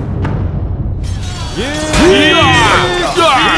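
A large crowd of soldiers shouts and roars as it charges.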